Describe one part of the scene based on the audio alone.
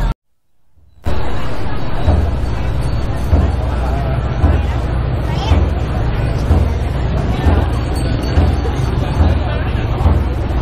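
A large crowd murmurs and chatters.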